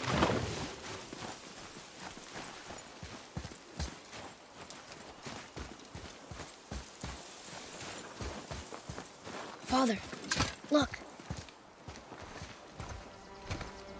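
Heavy footsteps crunch on snow.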